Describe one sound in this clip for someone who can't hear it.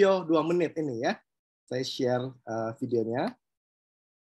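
A middle-aged man speaks calmly into a computer microphone, as on an online call.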